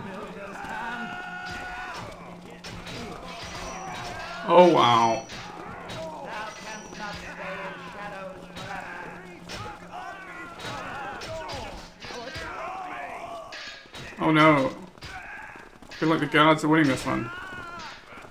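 Swords clash and clang in a close fight.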